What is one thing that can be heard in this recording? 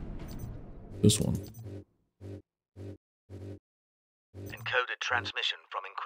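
Short electronic menu blips sound in a quick series.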